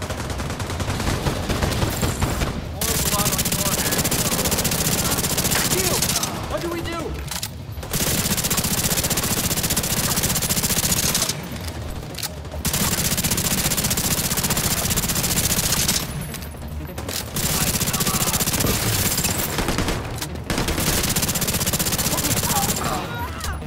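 A rifle fires in long rapid bursts with short pauses between them.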